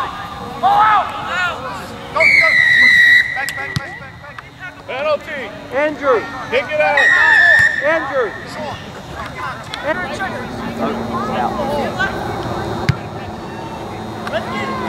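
Young women shout and call out to each other across an open field.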